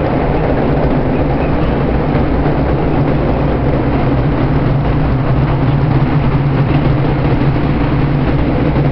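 A vehicle rumbles steadily as it drives along a road.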